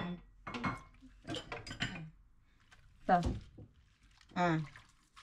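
Dishwater sloshes softly as a glass is washed by hand.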